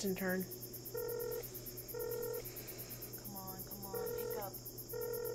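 A phone rings with a steady repeating tone.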